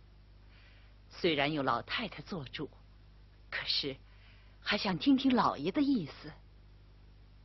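A middle-aged man speaks in a low, measured voice, close by.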